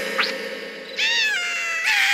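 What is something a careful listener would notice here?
A cartoon creature squeals and babbles in a high, excited voice.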